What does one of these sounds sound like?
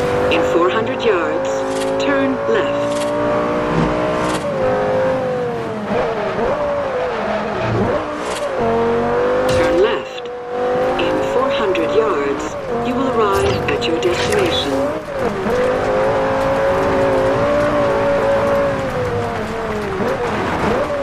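A sports car engine roars at high revs, dipping and rising with each gear change.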